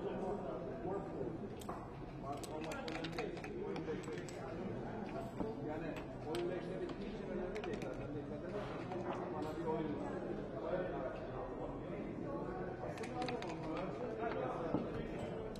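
Game pieces click as they are slid and tapped on a board.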